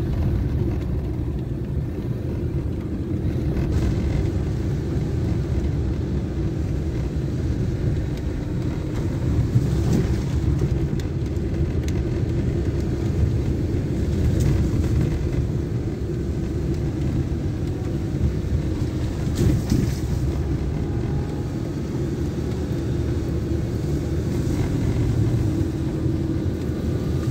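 Tyres crunch and rumble over a bumpy dirt road.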